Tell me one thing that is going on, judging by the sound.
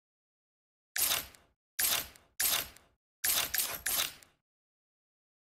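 Short menu whooshes sound as a game's map tabs switch.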